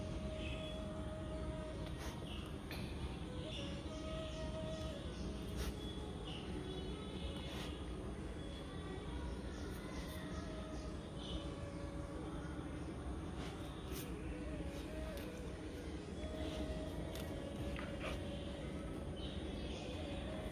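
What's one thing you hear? A puppy sniffs at the ground up close.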